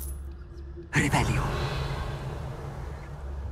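Magic sparks crackle and burst.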